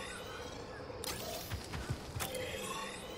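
A menu chime sounds.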